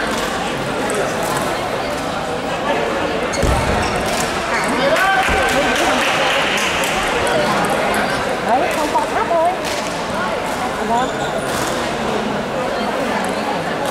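A ping-pong ball clicks back and forth on paddles and the table.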